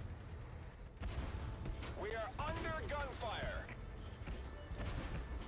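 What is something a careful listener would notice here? Shells explode nearby.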